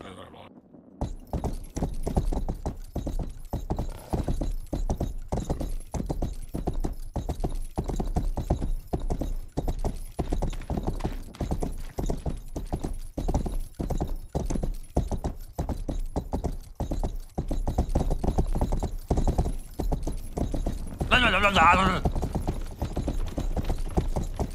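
A horse gallops with heavy, rhythmic hoofbeats.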